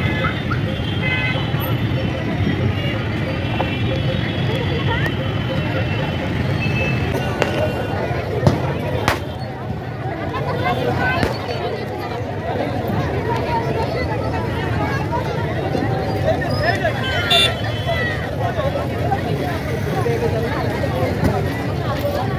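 A large crowd chatters and murmurs all around outdoors.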